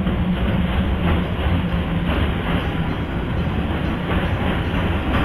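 An electric commuter train rumbles along the rails.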